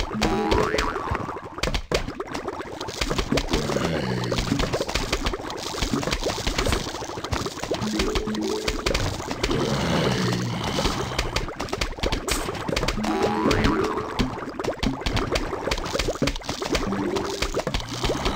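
Game music plays with a bouncy melody.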